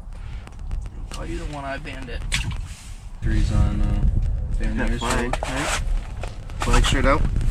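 A second man talks casually close by.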